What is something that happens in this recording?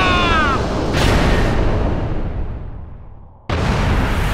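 A loud blast roars and slowly fades.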